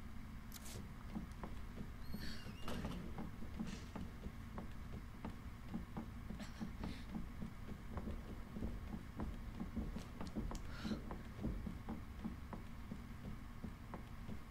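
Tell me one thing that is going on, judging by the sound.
Footsteps thud steadily on hollow floors and stairs.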